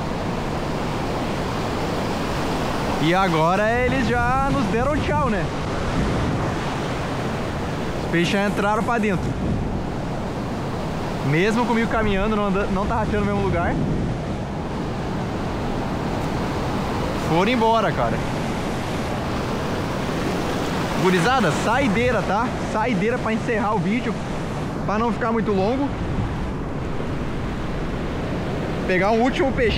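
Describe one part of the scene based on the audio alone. Waves wash and break close by.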